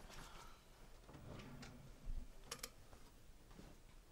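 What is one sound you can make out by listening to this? A wooden drawer slides open.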